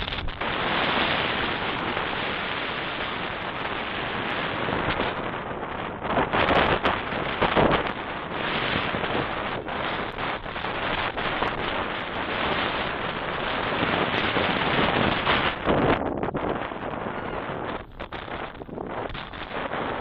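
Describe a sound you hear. Wind blows steadily across an open outdoor field.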